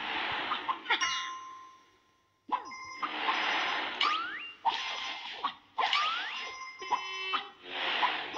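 Bright game chimes ring out as coins are collected.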